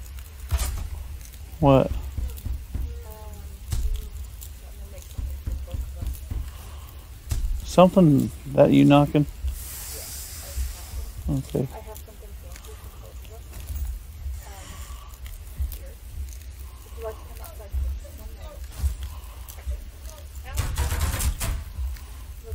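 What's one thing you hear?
A fire crackles and roars close by.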